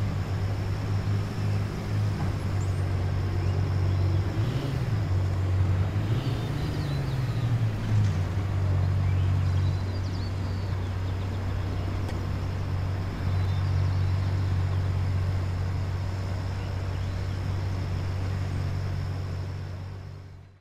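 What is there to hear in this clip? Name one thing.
A sports car engine idles with a deep, throaty rumble.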